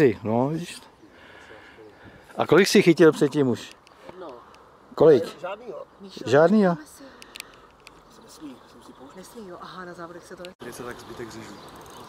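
Men talk nearby with animation outdoors.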